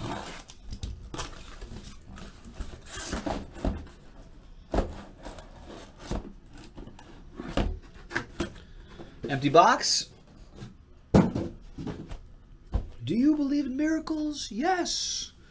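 Cardboard boxes rustle and knock as they are handled.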